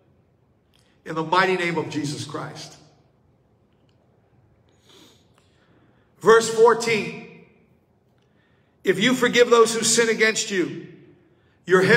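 A middle-aged man sings slowly into a close microphone, in short phrases with pauses between them.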